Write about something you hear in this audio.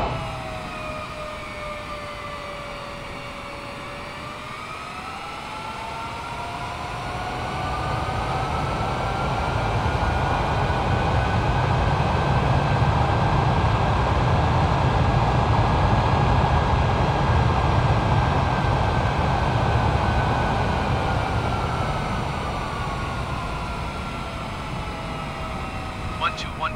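Jet engines whine and roar, rising in pitch and then slowly falling away.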